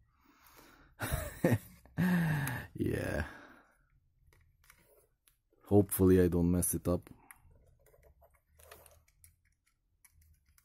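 A small screwdriver scrapes and clicks against a screw head.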